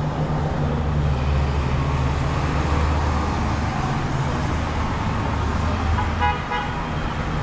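A bus engine rumbles as the bus drives past.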